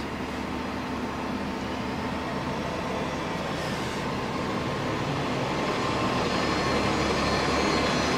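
A bus engine rumbles close by and grows louder as the bus turns past.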